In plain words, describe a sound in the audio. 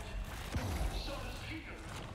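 Glass shatters and shards scatter.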